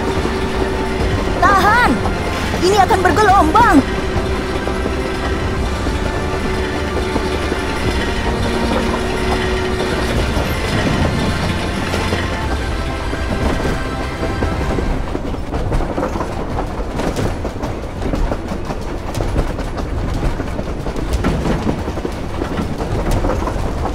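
Wheels rumble and clatter along a railway track.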